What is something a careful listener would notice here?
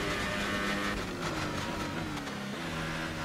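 A racing car engine drops in pitch in quick steps as the car brakes and shifts down.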